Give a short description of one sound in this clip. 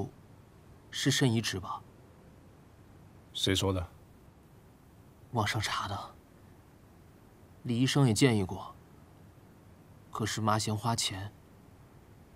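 A man answers in a firm voice, close by.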